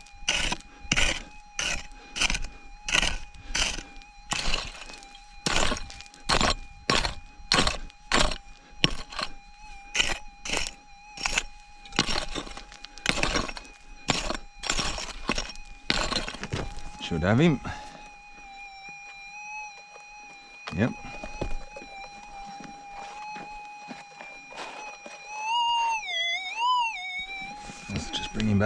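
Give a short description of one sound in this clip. A metal detector hums with a steady high tone that wavers.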